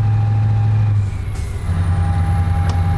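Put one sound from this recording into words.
A truck engine drops briefly in pitch as the gear changes.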